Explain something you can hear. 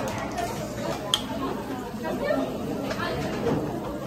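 An espresso machine hisses and clatters as coffee is made.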